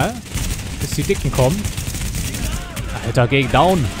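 Rifles fire in rapid bursts.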